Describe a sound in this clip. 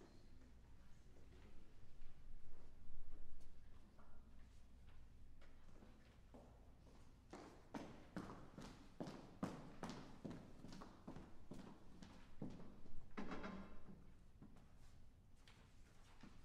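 A piano plays in a large echoing hall.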